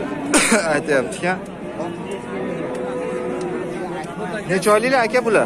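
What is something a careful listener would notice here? Men talk loudly close by in an outdoor crowd.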